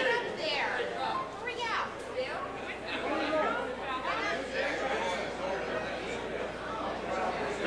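An elderly man laughs.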